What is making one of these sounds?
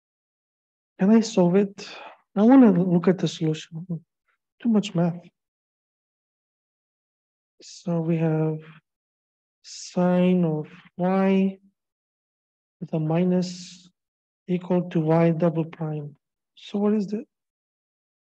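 A man speaks calmly through an online call microphone, in short phrases with pauses.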